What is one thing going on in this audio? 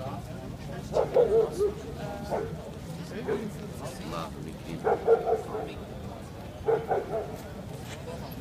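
A man speaks loudly in short bursts close by.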